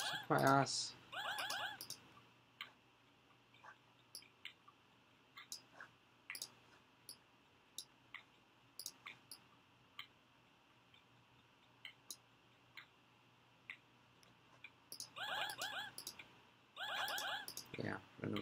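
Short electronic game tones beep and chime.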